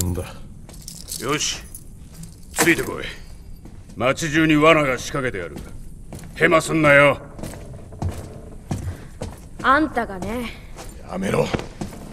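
A man speaks in a low, gruff voice, close by.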